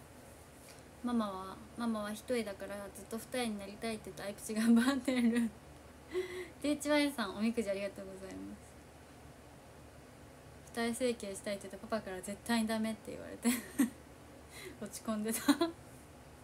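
A young woman talks with animation close to a microphone, pausing now and then.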